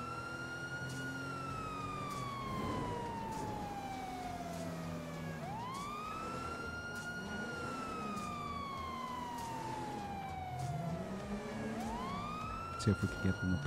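A car engine roars loudly, its pitch sliding down and then jumping back up with each gear change.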